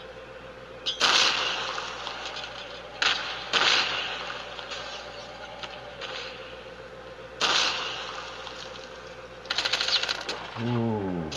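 A heavy gun fires loud bursts.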